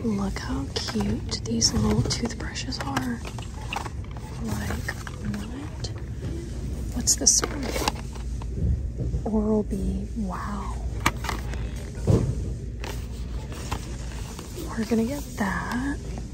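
Plastic packaging crinkles and clicks as it is handled.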